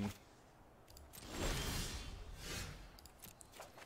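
A soft whooshing swell plays as a new turn begins.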